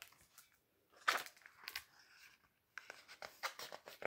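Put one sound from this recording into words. A book's page rustles as it is turned.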